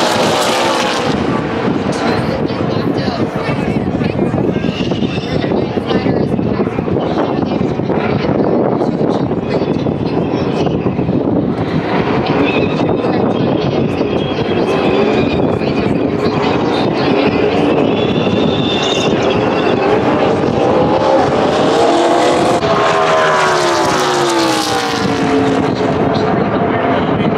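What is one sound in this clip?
Race car engines roar loudly as a pack of cars speeds past.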